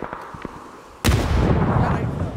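Gunfire bursts loudly and rapidly close by.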